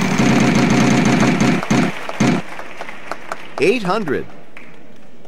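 A prize wheel spins with rapid clicking.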